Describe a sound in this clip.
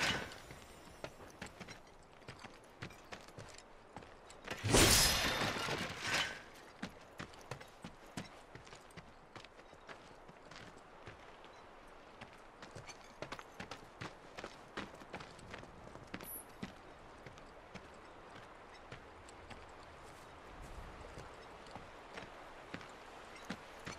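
Footsteps crunch on dirt ground.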